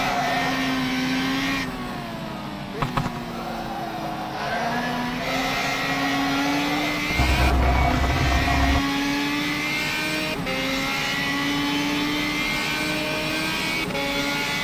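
A racing car engine roars loudly, rising in pitch and dropping sharply at each gear change.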